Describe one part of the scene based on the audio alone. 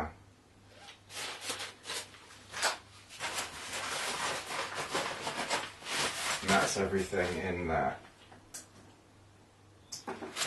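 Fabric and straps rustle as a backpack is packed.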